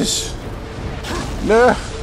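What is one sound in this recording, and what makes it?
A fiery explosion booms and roars.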